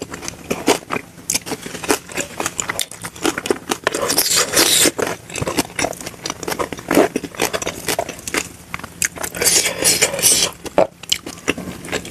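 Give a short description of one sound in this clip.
Fingers squish and mix rice close by.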